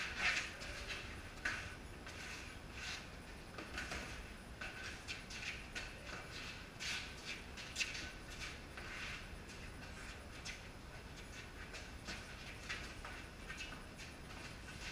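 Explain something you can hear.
Gloved punches thud against mitts in sharp bursts.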